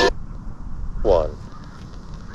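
A radio gives a short falling tuning squeal.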